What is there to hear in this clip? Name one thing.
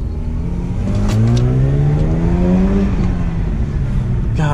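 A car engine revs up, rising in pitch, then drops back.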